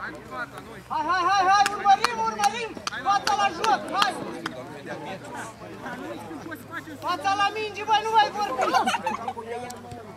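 Football players shout loudly across an open field.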